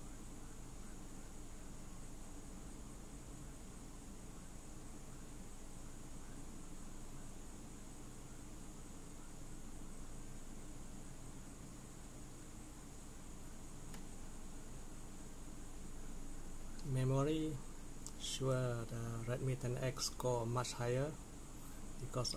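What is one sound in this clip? A train engine rumbles steadily from a small phone speaker.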